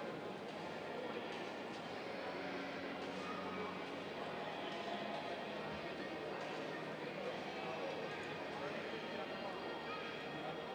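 A crowd murmurs throughout a large echoing arena.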